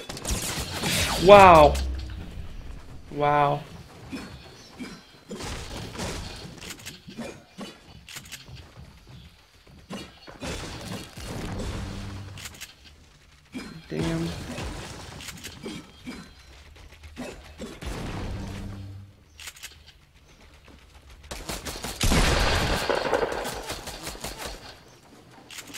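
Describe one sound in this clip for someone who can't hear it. Building pieces snap into place with quick wooden knocks.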